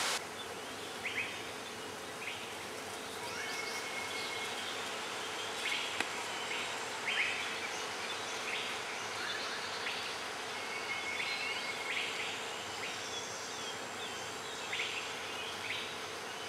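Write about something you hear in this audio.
Birds chirp and whistle in short bursts nearby.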